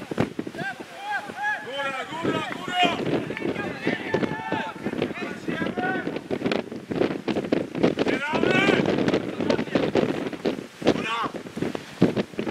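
Men shout to each other across an outdoor football pitch.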